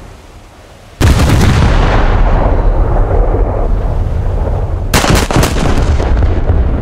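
Heavy naval guns fire with loud booming blasts.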